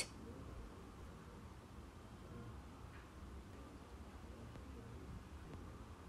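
Scissors snip through yarn.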